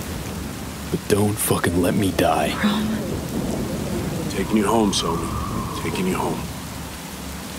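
A man speaks in a low, gruff voice close by.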